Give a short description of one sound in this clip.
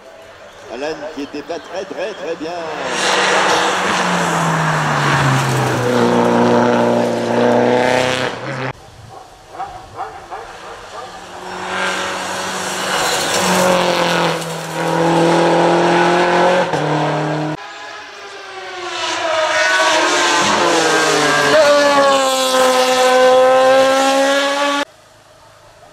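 A racing car engine roars loudly and revs through the gears as the car speeds past.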